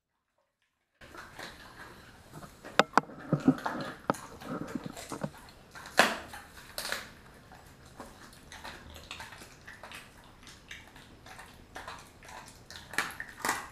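A dog licks and smacks its lips up close.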